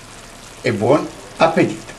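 Sauce bubbles gently in a pan.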